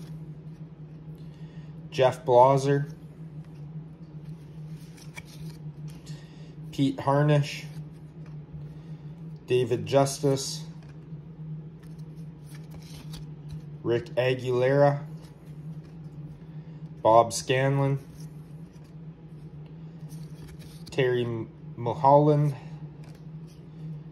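Stiff cards slide and rustle softly as they are flipped by hand.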